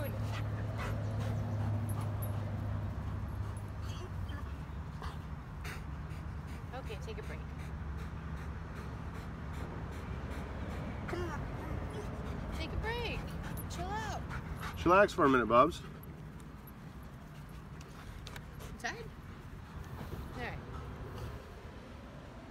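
A dog pants heavily close by.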